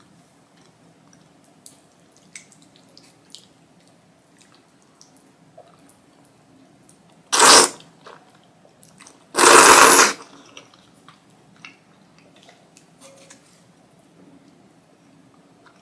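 Chopsticks and a spoon clink softly against a bowl.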